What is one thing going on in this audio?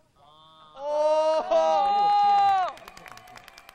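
Several young men whoop and cheer loudly.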